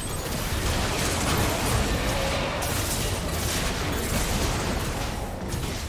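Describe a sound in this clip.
Video game combat sound effects clash and crackle.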